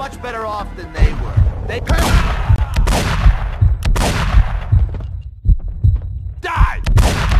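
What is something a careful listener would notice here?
Pistol shots ring out again and again, each with a deep boom.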